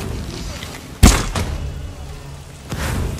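A blade swishes through the air and strikes.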